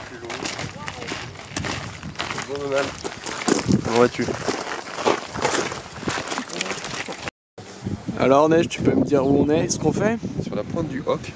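Young men talk casually nearby, outdoors in wind.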